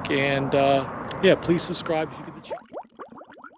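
An elderly man talks calmly outdoors.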